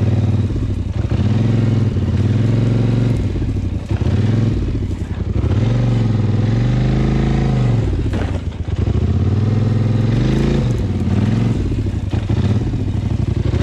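A quad bike engine rumbles up close, its pitch rising and falling as it revs.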